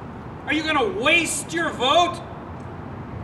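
A middle-aged man speaks loudly and with animation close to a microphone.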